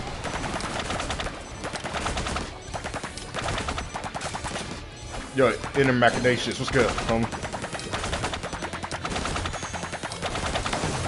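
Rapid hits and magic blasts crackle in a video game battle.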